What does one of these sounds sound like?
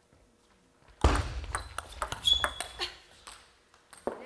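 Ping-pong balls clack quickly back and forth off paddles and a table in a fast rally.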